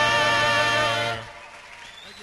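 A group of men sings a held chord in close harmony through microphones.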